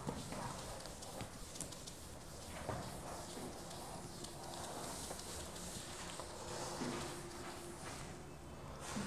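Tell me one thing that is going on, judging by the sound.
A man wipes a whiteboard with a duster in soft rubbing strokes.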